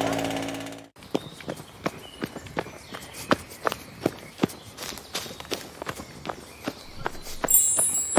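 A jackhammer pounds rapidly.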